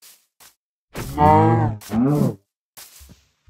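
A sheep bleats twice.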